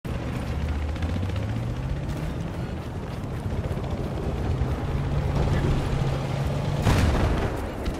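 A heavy tank engine rumbles and drones steadily nearby.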